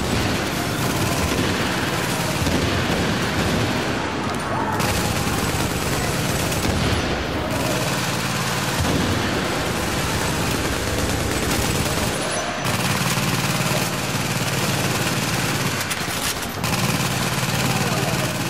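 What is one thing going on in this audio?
Rapid gunfire rattles continuously.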